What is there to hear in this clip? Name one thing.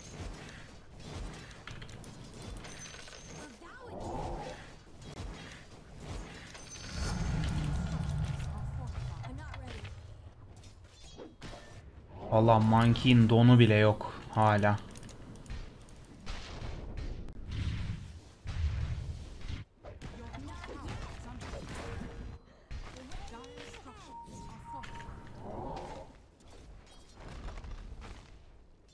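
Fantasy battle sound effects crackle and whoosh.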